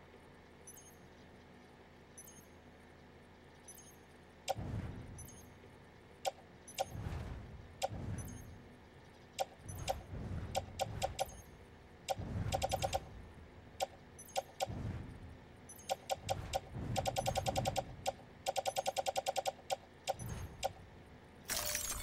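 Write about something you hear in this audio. Short electronic clicks tick, sometimes in quick runs.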